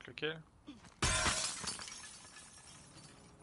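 Glass shatters loudly and the shards tinkle as they fall.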